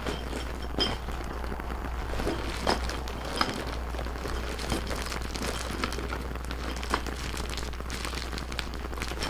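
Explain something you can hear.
Plastic crinkles as paws handle a wrapped bag.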